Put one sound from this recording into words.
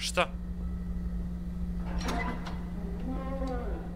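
Wooden cellar doors swing open.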